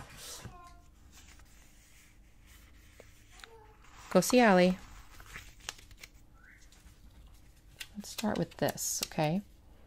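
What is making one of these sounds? A sticker peels off a paper backing.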